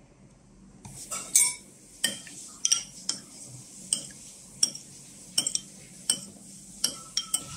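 A spoon clinks and scrapes against a ceramic bowl while stirring.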